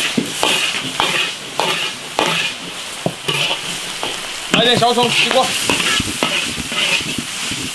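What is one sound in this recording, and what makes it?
A metal ladle scrapes and clanks against a wok.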